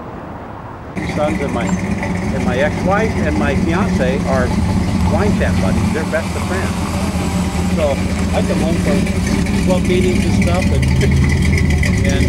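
A truck engine rumbles and idles close by.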